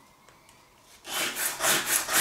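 Sandpaper rubs briskly against wood.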